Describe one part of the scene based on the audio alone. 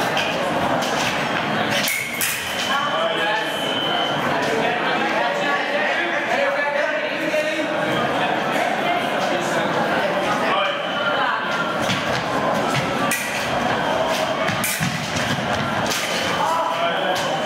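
Fencing blades clash and scrape sharply.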